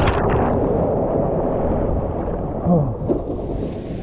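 Water splashes into a pool at the end of a slide.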